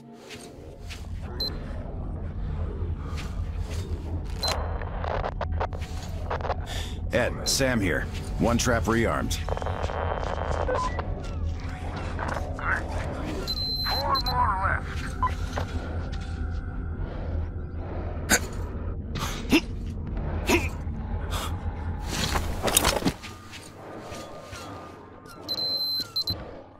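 Footsteps crunch over a gritty floor.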